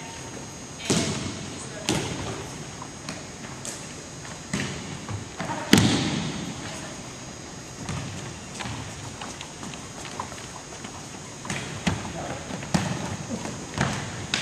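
A volleyball is struck with loud smacks that echo through a large hall.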